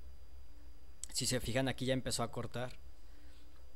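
A young man speaks briefly and casually into a microphone close by.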